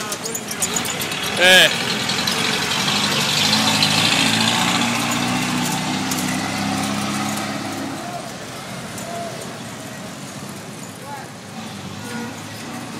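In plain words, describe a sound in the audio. Traffic rumbles and hums along a busy outdoor street.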